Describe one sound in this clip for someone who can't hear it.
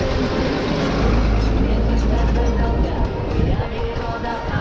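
A diesel box truck rumbles close by.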